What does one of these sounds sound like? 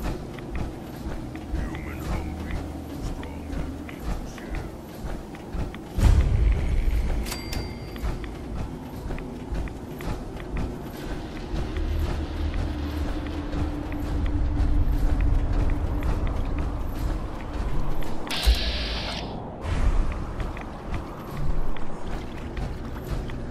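Heavy metal footsteps thud steadily on rough ground.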